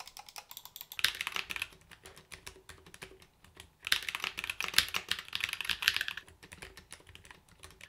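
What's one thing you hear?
Fingers type rapidly on a keyboard, with soft clicks and clacks.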